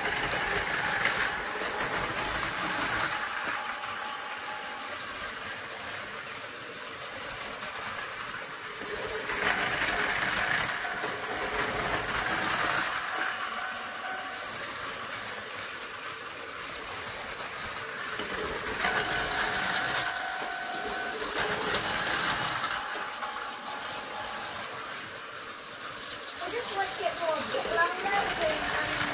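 Toy trains whir and rattle steadily along plastic tracks.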